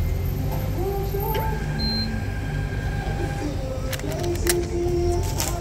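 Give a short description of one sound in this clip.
A receipt printer whirs as it prints.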